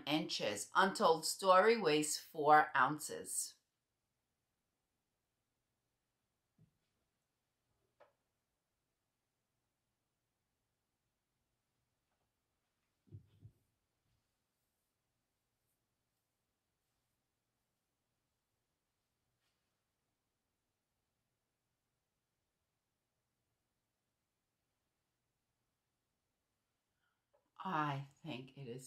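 A woman speaks calmly and warmly, close to a microphone.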